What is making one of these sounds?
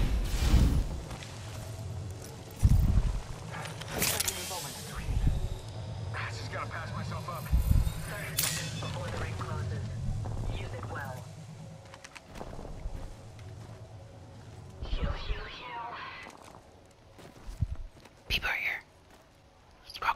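Heavy footsteps thud and scrape over rock.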